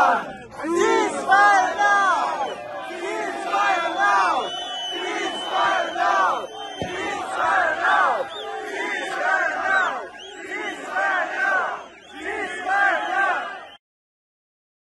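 A crowd chants together in the open air.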